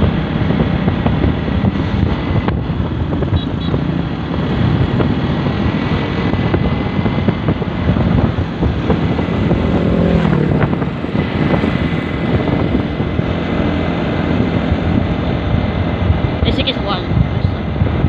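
Wind rushes and rumbles steadily past a moving vehicle outdoors.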